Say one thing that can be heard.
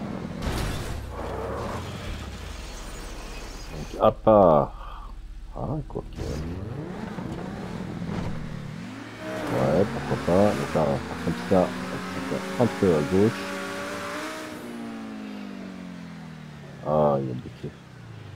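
A sports car engine revs and roars, rising and falling in pitch.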